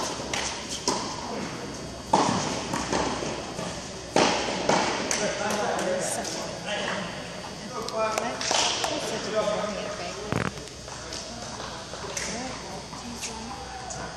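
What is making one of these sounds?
Tennis balls bounce on the court.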